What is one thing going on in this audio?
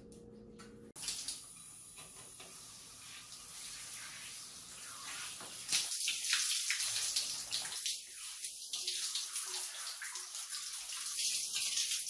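A shower head sprays water that splashes onto skin and a tiled floor.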